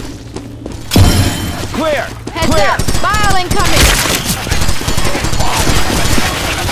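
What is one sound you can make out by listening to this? Rapid gunfire cracks loudly.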